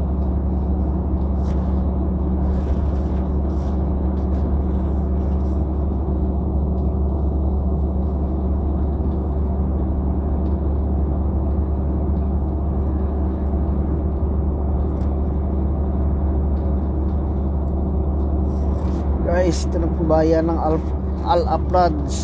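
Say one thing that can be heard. A vehicle's engine hums steadily while driving on a road.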